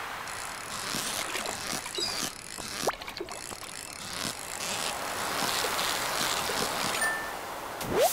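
A fishing reel whirs in bursts.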